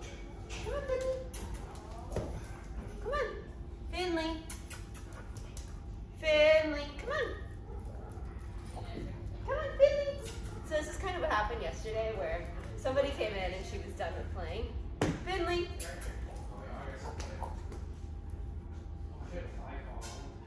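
A dog's claws tap on a hard floor.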